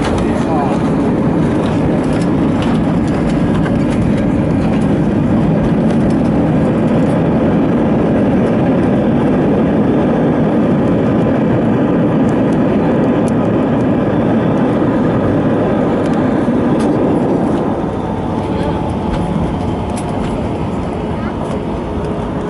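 A jet engine roars steadily, heard from inside the cabin, and quietens a little near the end.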